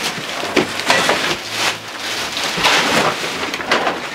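Plastic bags rustle as they are handled.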